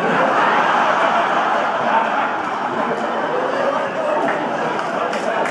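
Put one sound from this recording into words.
An elderly man speaks animatedly through a microphone in an echoing hall.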